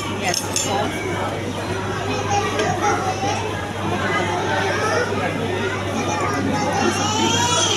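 A spoon clinks against a plate.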